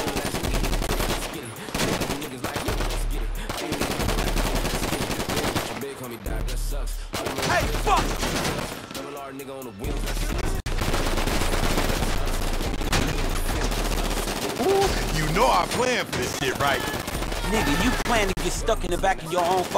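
Pistol shots fire in quick bursts.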